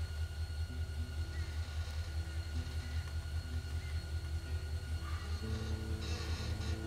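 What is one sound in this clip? A man strums a guitar softly.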